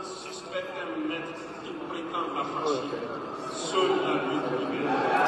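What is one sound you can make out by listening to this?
A large crowd chatters and cheers in an open stadium.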